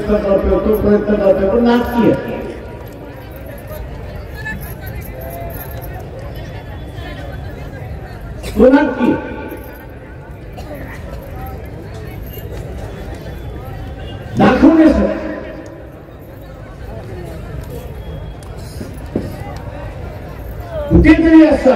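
An elderly man speaks forcefully through a loudspeaker outdoors, with pauses between phrases.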